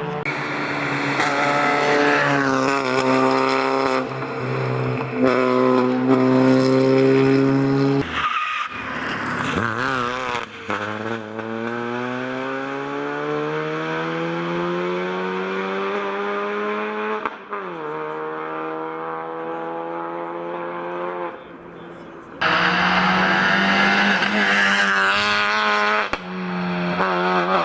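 A rally car engine roars at high revs and shifts gears as the car speeds past.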